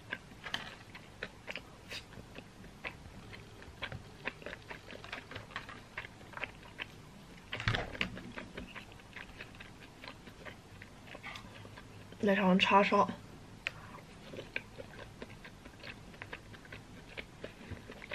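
A young woman chews food close by.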